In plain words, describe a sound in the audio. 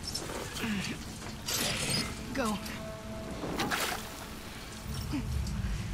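A chain-link fence rattles and clinks.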